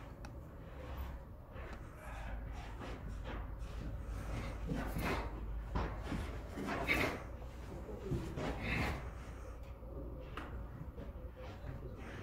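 Loose clothing swishes with quick arm strikes.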